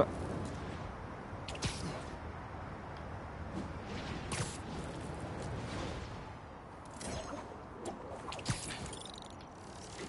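Wind rushes steadily past.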